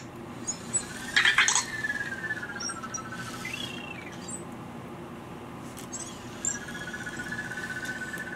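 A small toy robot chirps with gliding electronic tones.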